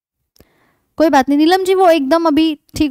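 A young woman speaks clearly and with animation into a close microphone.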